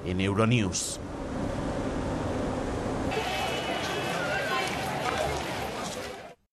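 Car traffic rumbles past on a busy street.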